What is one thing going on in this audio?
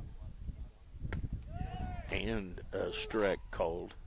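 A baseball pops into a catcher's mitt.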